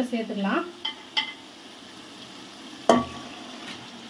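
Chicken pieces drop with a wet thud into a pot.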